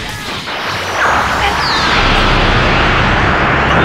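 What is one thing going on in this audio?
A huge energy ball crackles and roars as it grows.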